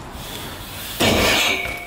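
A bicycle lands hard on concrete.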